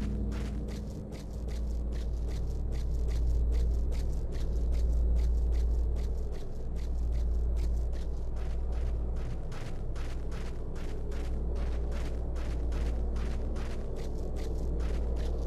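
Footsteps tap steadily and quickly on a hard floor.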